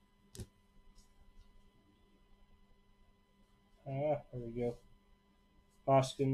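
Trading cards rustle and slide as hands sort through them.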